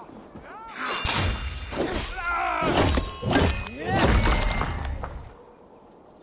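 Blades clash and thud in a brief fight.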